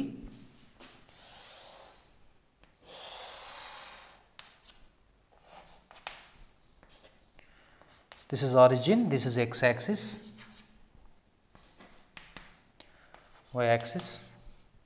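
Chalk scrapes and taps on a blackboard.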